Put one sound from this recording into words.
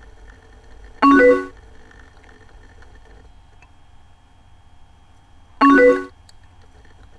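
A short bright chime sounds twice as messages arrive.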